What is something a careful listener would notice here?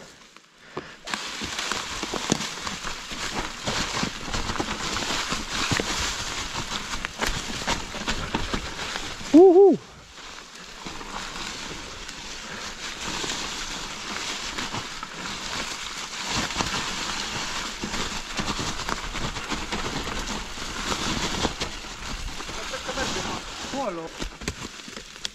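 A mountain bike rattles and clatters over bumps.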